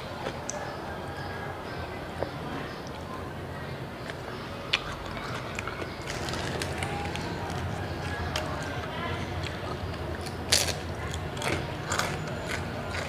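A woman chews and crunches food close to a microphone.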